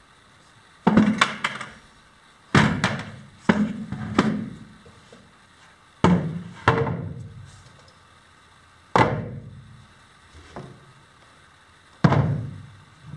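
Heavy objects knock and clatter loudly as they are set down nearby.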